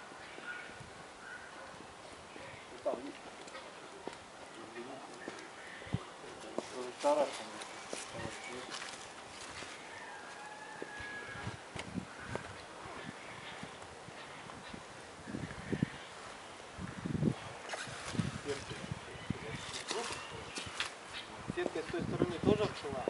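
An alpaca sniffs and snuffles right up close.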